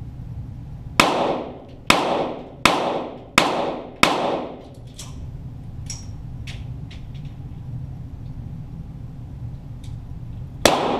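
Gunshots bang in a quick series, each followed by a short echo.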